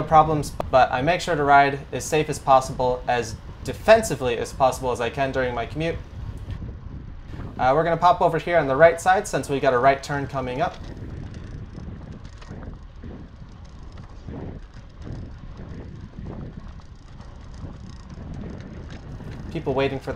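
Bicycle tyres roll and hum on a paved road.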